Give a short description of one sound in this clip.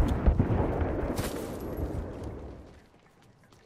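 Quick footsteps rustle through grass.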